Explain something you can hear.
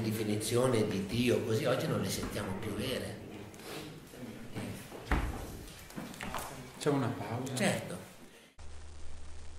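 An elderly man talks with animation nearby.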